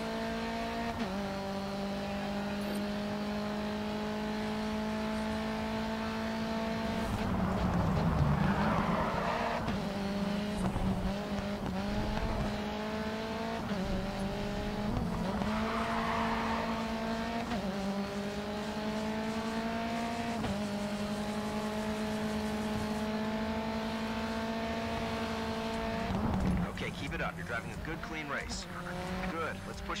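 A racing car engine roars loudly, rising in pitch through the gears.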